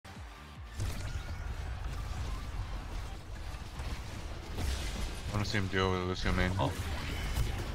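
Electronic game effects whoosh and blast during a fast fight.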